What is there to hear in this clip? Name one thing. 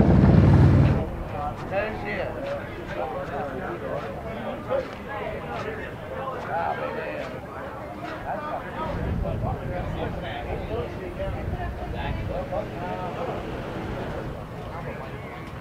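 A crowd of men and women chatter outdoors.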